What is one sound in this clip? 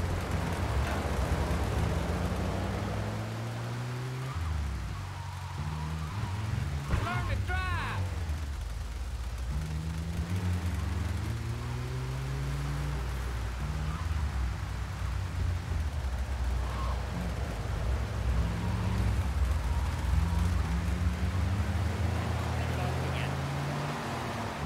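A van engine revs up and down as it drives.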